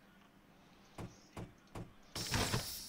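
Switches click several times.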